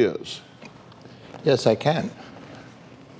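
A middle-aged man speaks with surprise into a microphone.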